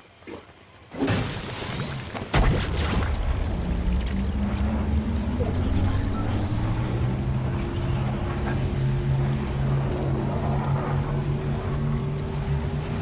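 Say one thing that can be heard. Electric energy crackles and buzzes loudly.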